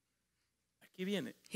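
A man speaks briefly.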